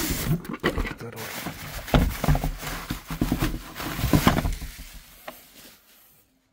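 Plastic bubble wrap crinkles and rustles as it is handled.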